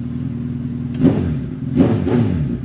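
A motorcycle engine revs sharply.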